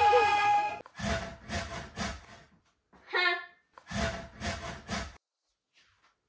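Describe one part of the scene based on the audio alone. A grater scrapes rhythmically.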